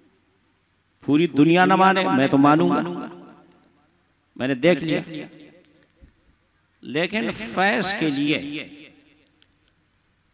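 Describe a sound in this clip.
A man chants in long melodic phrases through a loudspeaker, with a reverberant echo in a large hall.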